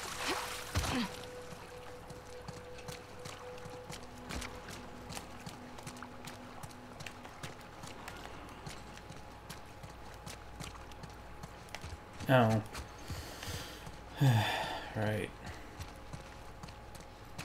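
Quick footsteps run over hard ground.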